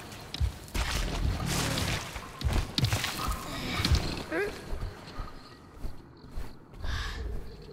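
A huge beast's heavy footsteps thud on the ground.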